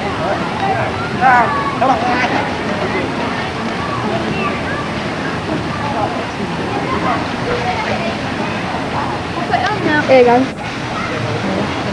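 Water splashes as swimmers move through a pool.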